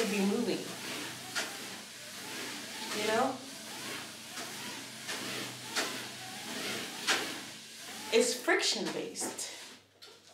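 Bare feet thud on a treadmill belt in a steady walking rhythm.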